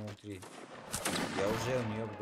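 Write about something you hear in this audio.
A musket fires with a sharp crack.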